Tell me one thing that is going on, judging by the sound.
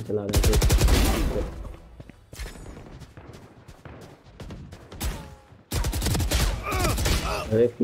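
A submachine gun fires rapid bursts at close range.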